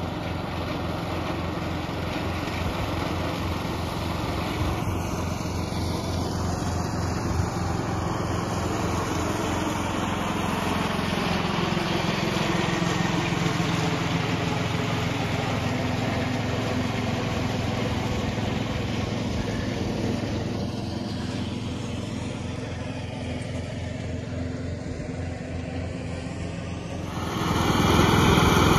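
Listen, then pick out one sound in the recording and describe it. A ride-on lawn mower engine drones steadily at a distance.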